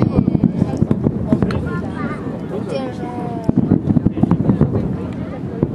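Fireworks crackle and pop in rapid bursts in the distance.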